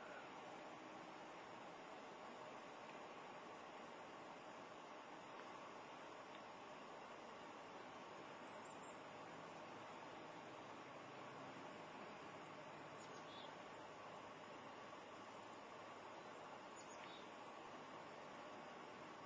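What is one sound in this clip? Deer step softly through deep snow in the distance.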